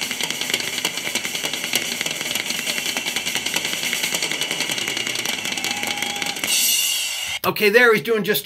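Drums and cymbals play loudly in a live concert recording.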